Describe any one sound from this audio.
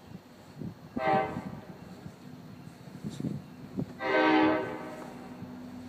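A train horn blows two loud blasts from a distance.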